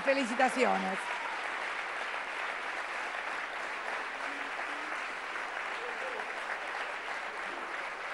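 A large crowd applauds steadily in a big hall.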